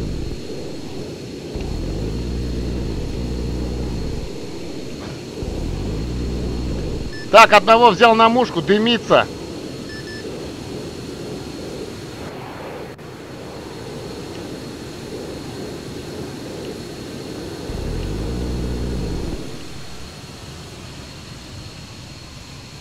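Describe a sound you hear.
A jet engine roars steadily, swelling louder at times.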